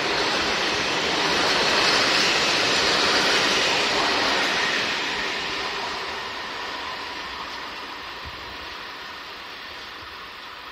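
A freight train rumbles and clatters past close by, then fades into the distance.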